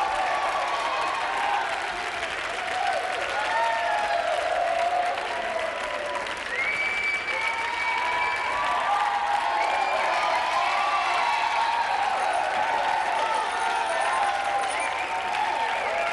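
A crowd of young people cheers and sings along loudly.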